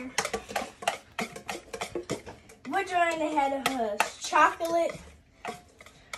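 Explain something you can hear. A whisk beats batter, clinking against a bowl.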